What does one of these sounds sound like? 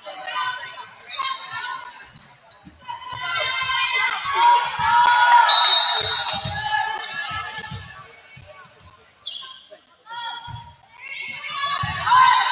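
A crowd of spectators cheers and shouts in a large echoing gym.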